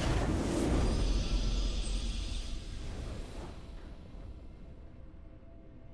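A short triumphant victory tune rings out and fades away.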